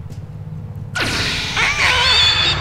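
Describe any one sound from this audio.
An electronic beam whooshes and warbles loudly.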